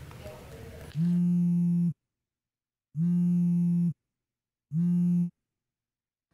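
A phone line rings in steady repeated tones.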